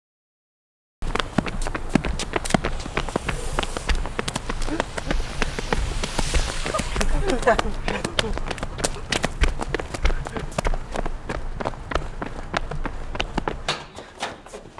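Footsteps run quickly on pavement outdoors.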